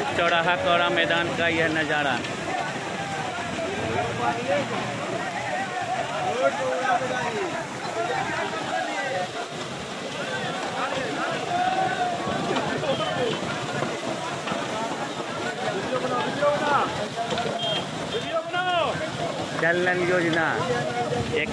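A crowd of men talk and shout excitedly nearby outdoors.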